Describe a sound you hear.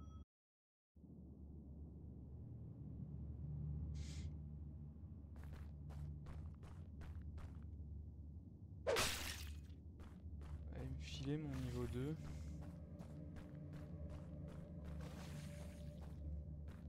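Dark, eerie music drones steadily.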